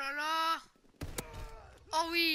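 A gunshot cracks sharply once.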